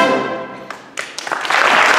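A concert band holds a final chord in a large hall, which then fades away.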